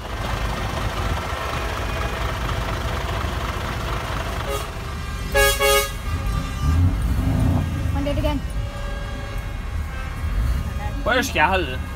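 A large truck engine idles with a deep, steady rumble.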